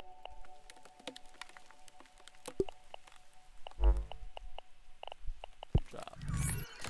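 Short soft interface clicks tick one after another.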